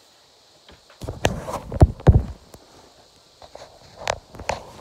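A phone bumps and rustles as it is handled.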